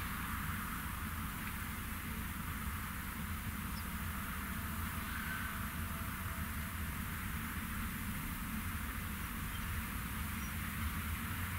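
Beets clatter along a conveyor.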